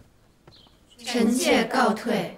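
Several young women speak together in unison.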